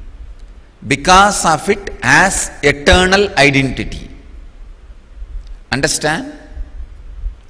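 A man speaks calmly and expressively into a microphone.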